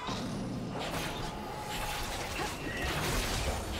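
Game characters clash with sharp hits.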